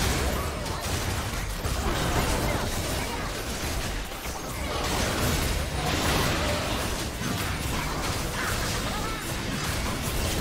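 Game spell and combat effects burst and clash rapidly.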